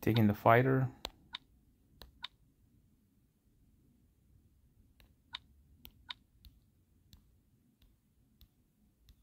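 Short soft interface clicks tick now and then.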